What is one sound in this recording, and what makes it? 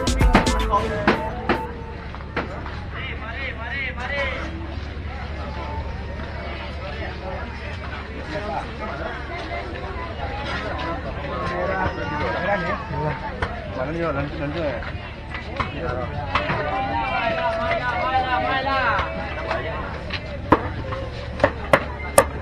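A crowd of people chatter all around outdoors.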